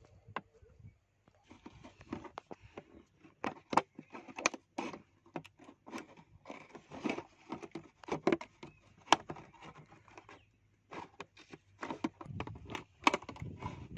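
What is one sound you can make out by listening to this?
Scissors snip and crunch through a plastic bottle.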